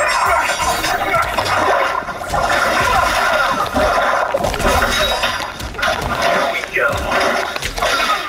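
Fighters' blows land with heavy thuds and whooshes.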